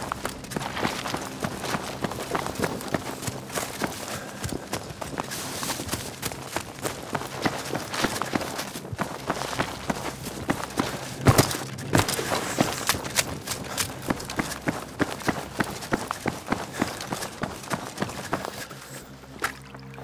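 Footsteps crunch quickly over grass and rocky ground.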